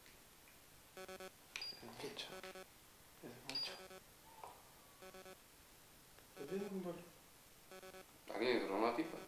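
An electronic handheld meter beeps in short bursts.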